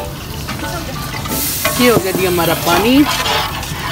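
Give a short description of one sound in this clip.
A metal spoon stirs and scrapes against a steel pot.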